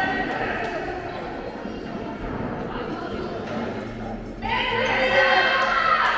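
Spectators talk and call out in a large echoing hall.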